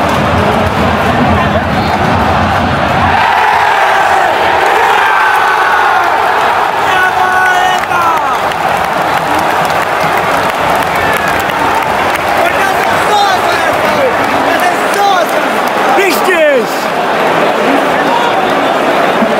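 A large stadium crowd roars and chants loudly throughout.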